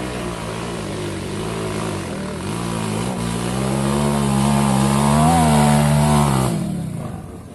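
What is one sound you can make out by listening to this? A dirt bike engine revs as the motorcycle climbs toward the listener, growing louder.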